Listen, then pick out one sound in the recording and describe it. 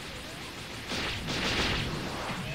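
An energy ball bursts with a loud roar.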